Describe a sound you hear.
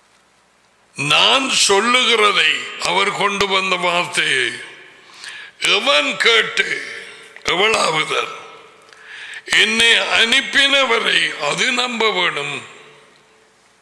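A middle-aged man speaks forcefully and with animation close to a microphone.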